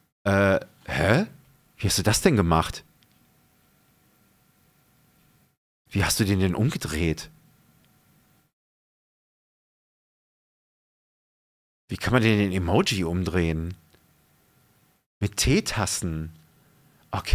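A man speaks close into a microphone in short, animated bursts.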